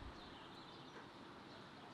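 A goose honks nearby.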